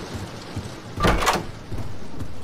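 A door swings open with a loud creak.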